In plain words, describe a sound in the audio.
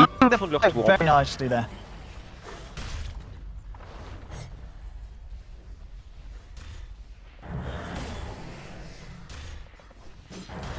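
Magic spells crackle and whoosh in a fantasy battle.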